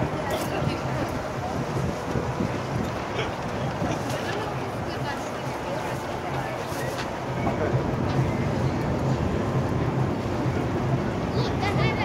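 City traffic hums and rumbles steadily on a busy street outdoors.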